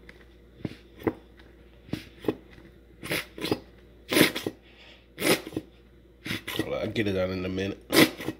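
A squeeze bottle of sauce sputters and squirts.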